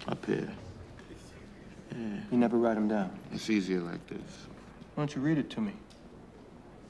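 A man speaks calmly and quietly close by.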